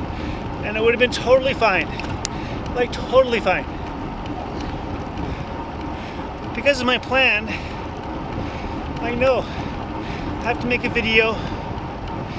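A man talks close to a microphone in short bursts, slightly out of breath.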